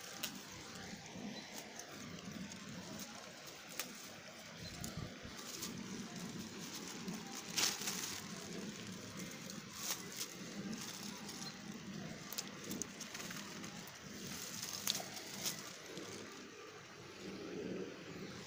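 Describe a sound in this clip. Dry stems and leaves rustle and crackle as a hand brushes through them.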